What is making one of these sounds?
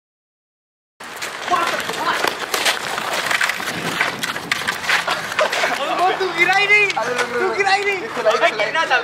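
Young men shout and laugh nearby outdoors.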